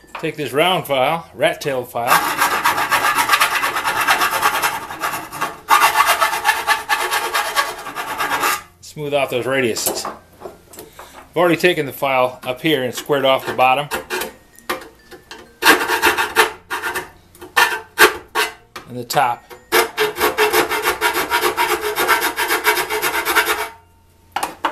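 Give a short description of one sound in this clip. A metal tool scrapes and grinds against metal.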